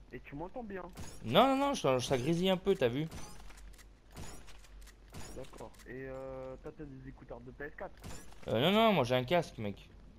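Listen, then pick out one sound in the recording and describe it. Gunshots crack out in a quick series.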